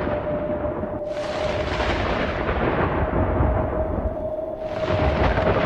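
Thunder cracks and rumbles loudly.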